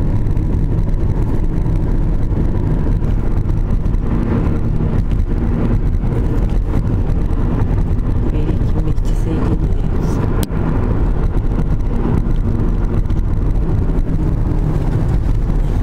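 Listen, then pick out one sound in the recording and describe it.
A car engine and tyres rumble steadily from inside a moving car.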